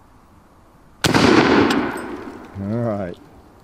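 A shotgun fires a single loud blast that echoes away outdoors.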